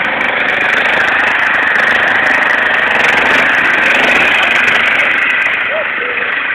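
A lawn tractor engine drones loudly close by.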